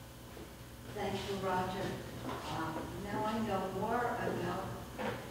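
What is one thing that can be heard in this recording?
A woman speaks calmly into a microphone, heard through loudspeakers in a large hall.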